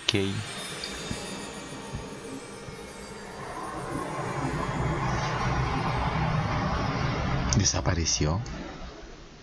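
A shimmering, magical hum swells and then fades away.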